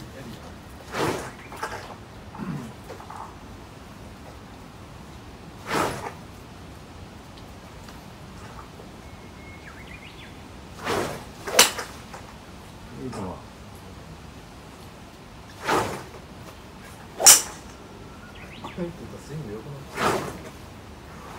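A golf club strikes golf balls with sharp clicks.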